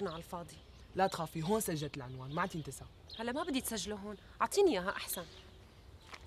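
A teenage boy speaks with animation.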